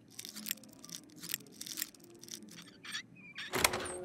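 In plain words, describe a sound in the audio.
A metal pick scrapes and clicks inside a lock.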